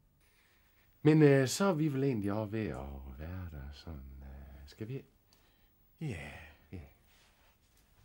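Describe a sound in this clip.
A man speaks with animation nearby.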